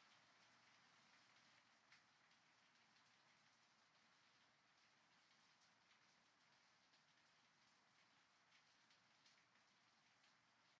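Raindrops splash into a puddle with soft drips.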